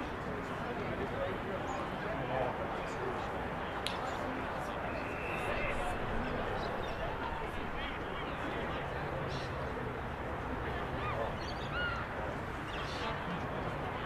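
Wind blows steadily across an open field outdoors.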